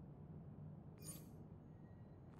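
A game menu opens with a short, soft interface sound.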